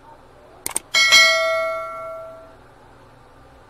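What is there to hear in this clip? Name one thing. A bell rings and slowly fades.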